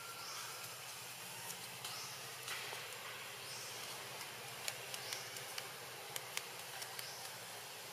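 Leaves and twigs rustle as a small monkey climbs in a tree.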